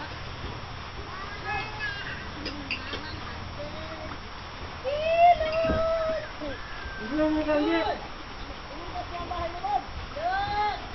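Several adults talk and call out nearby, outdoors.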